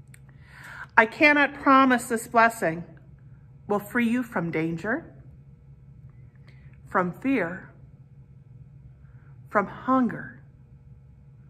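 A middle-aged woman speaks calmly close to the microphone, with pauses.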